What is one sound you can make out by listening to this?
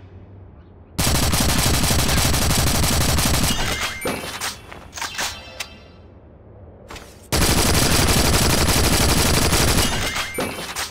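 A rifle fires rapid automatic bursts.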